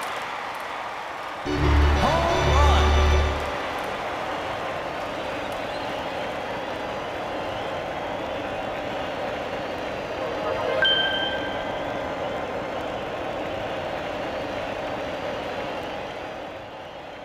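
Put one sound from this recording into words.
A large crowd cheers steadily in an echoing stadium.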